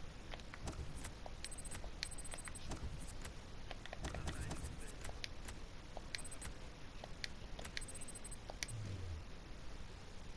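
Short clicks tick as a game menu is navigated.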